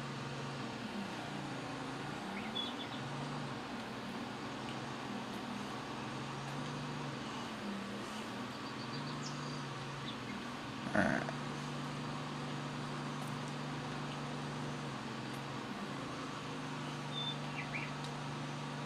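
A mower engine hums steadily with a low drone.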